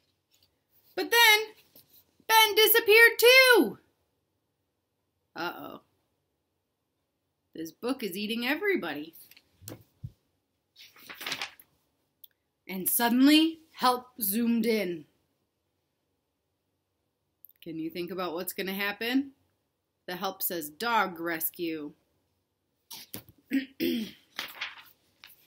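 A young woman reads aloud expressively, close by.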